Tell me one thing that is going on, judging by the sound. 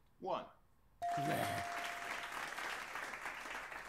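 A game chime rings as a letter is revealed.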